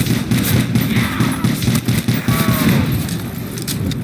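A gun fires in rapid bursts in a video game.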